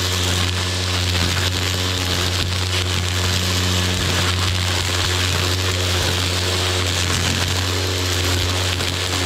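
A string trimmer engine whines steadily up close.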